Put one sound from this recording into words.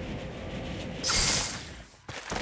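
A heavy thump sounds once on landing.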